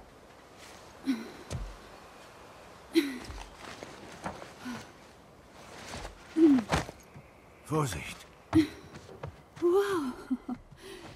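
Hands and feet knock and scrape on metal as a person climbs through a hatch.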